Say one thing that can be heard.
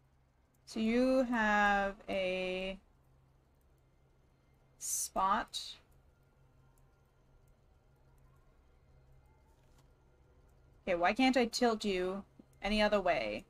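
A young woman speaks with animation into a microphone, in short bursts.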